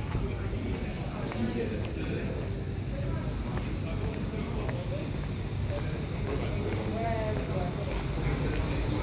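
Several adults chat quietly at a distance.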